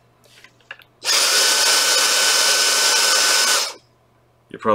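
A handheld vacuum cleaner whirs loudly.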